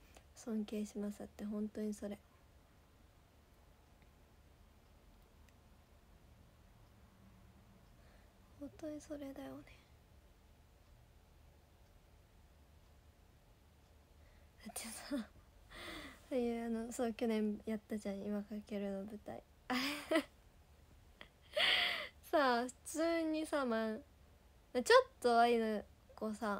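A young woman speaks softly and close to a microphone, pausing at times.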